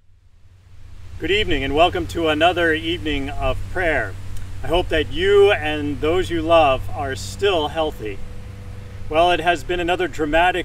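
A middle-aged man speaks calmly and clearly, close to a microphone.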